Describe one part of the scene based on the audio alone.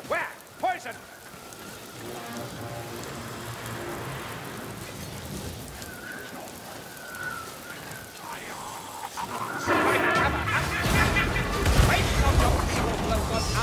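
A glowing magic arrow hisses and crackles.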